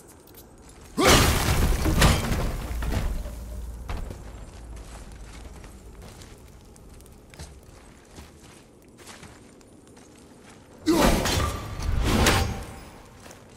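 An axe is thrown and strikes with a loud icy crack.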